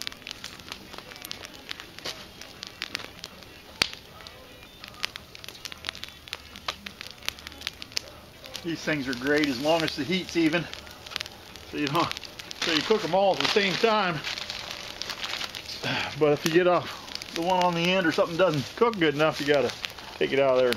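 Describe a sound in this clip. A wood campfire crackles and pops.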